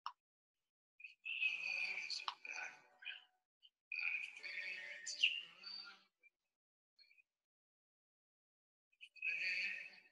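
A young woman speaks casually over an online call.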